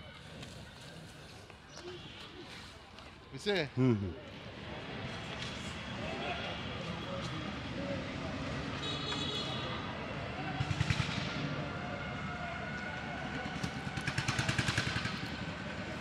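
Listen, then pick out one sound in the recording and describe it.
Several men talk casually nearby outdoors.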